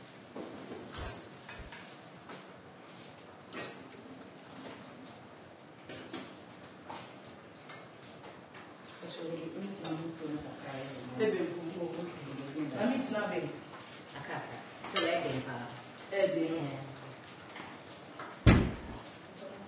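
A metal spoon clinks against a cooking pot.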